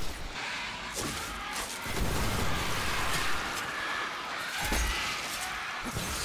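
Gunshots fire in quick bursts with a booming echo.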